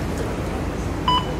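A fare card reader gives a short beep.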